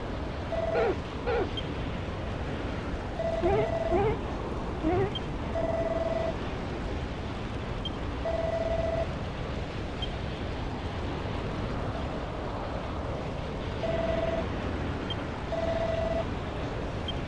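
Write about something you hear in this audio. Short electronic blips chirp in bursts.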